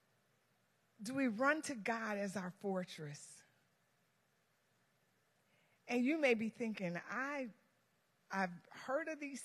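A woman speaks with animation through a microphone in a large echoing hall.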